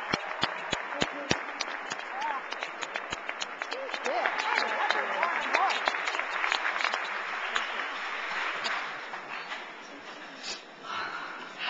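A woman's voice comes through loudspeakers in a large hall.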